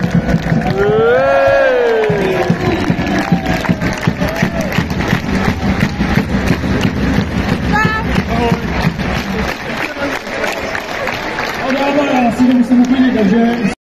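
A large crowd cheers and shouts loudly in a big echoing arena.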